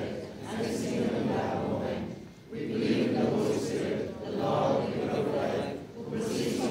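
A man reads out steadily through a microphone in a room with some echo.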